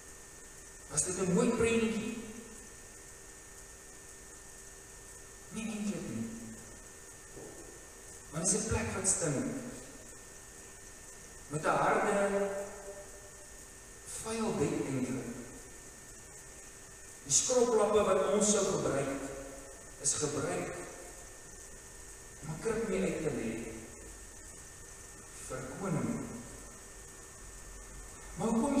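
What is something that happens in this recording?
An elderly man speaks slowly and calmly into a microphone, with pauses, in an echoing hall.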